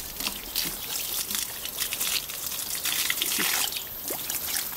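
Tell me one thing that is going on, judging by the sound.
Water splashes and trickles over raw meat.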